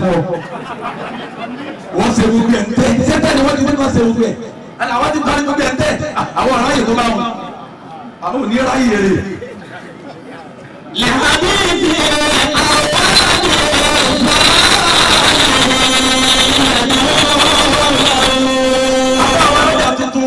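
A man preaches with animation through a microphone and loudspeaker outdoors.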